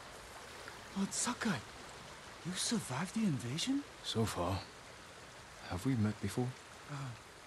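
A man talks casually into a microphone, close by, in short bursts.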